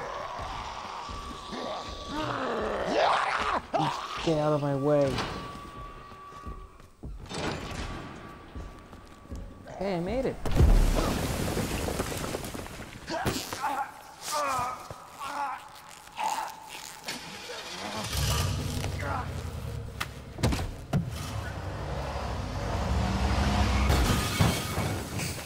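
A young man speaks with animation into a nearby microphone.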